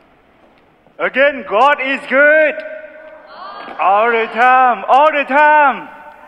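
A congregation sings a hymn together in a large echoing hall.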